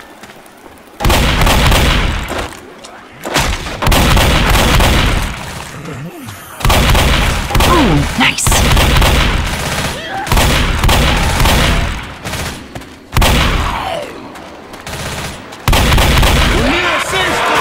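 Shotgun blasts boom again and again.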